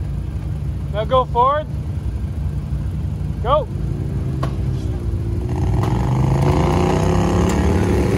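An off-road vehicle's engine rumbles and then revs louder.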